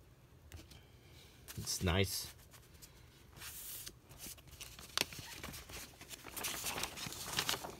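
A vinyl record slides out of a paper sleeve.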